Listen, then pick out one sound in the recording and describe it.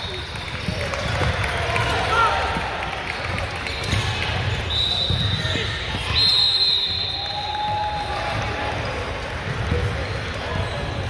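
A basketball thumps as it bounces on the court.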